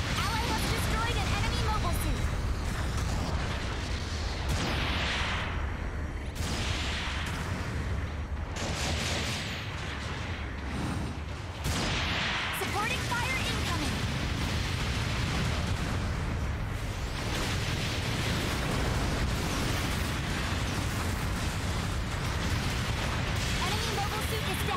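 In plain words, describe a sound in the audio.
Energy beams fire with sharp zaps.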